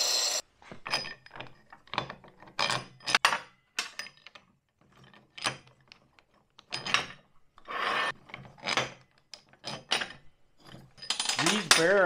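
Metal parts clink and knock as they are fitted together.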